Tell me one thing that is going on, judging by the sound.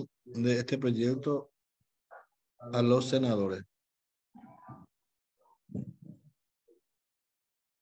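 A man speaks in short phrases over an online call.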